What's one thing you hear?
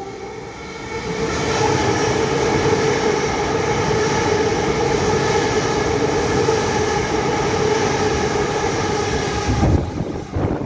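An electric train hums and whines as it rolls past.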